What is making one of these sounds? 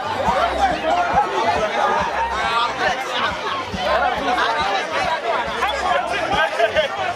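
A crowd of men and women talk and shout excitedly outdoors.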